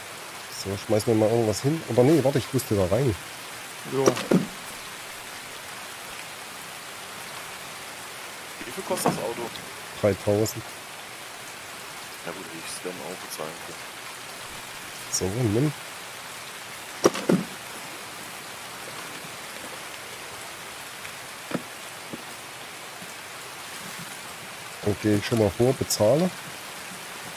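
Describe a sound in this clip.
A man talks into a close microphone in short bursts, with pauses between.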